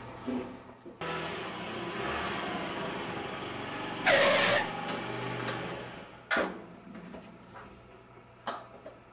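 A motor scooter engine hums as it rides up and idles.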